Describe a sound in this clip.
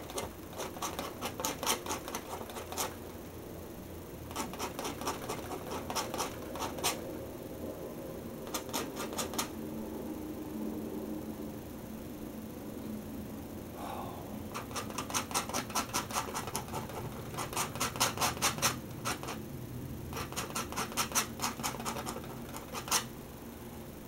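A paintbrush dabs and scratches rapidly against a canvas.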